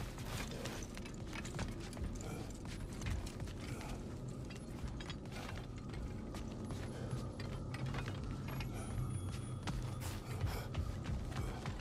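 Heavy footsteps thud on a stone floor.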